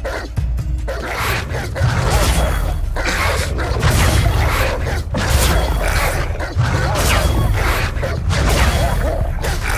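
Wolves snarl and growl close by.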